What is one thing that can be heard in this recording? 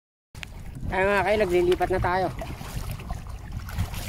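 A paddle splashes through water.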